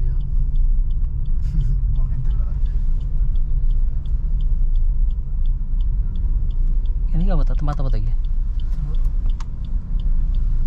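A turn signal ticks steadily inside the car.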